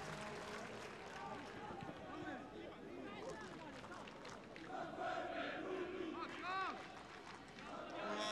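A large stadium crowd chants and roars outdoors.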